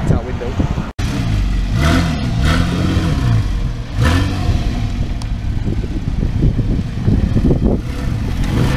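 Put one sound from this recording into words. A motorcycle engine rumbles close by and revs up and down.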